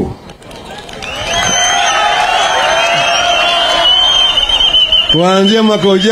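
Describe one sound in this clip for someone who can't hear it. A crowd cheers and whistles loudly outdoors.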